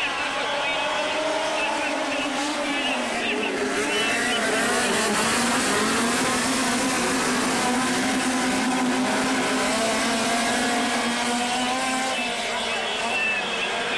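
Several small race car engines roar and rev loudly around a dirt track.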